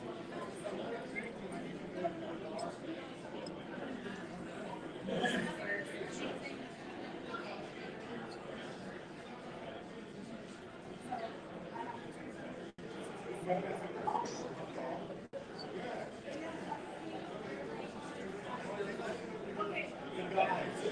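Several men and women chat at once, a murmur of voices in a room.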